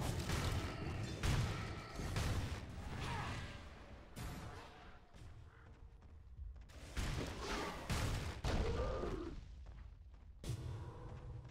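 Weapons clash and magic spells whoosh in a frantic fight.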